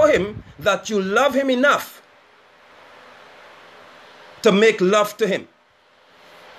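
A man speaks calmly and close to a phone microphone, in short bursts.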